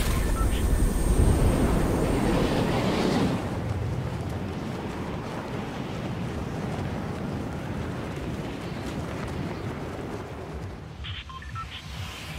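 Wind rushes steadily past a falling figure.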